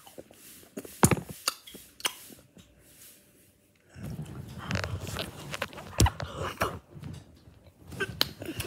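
A phone knocks and rustles as it is handled close by.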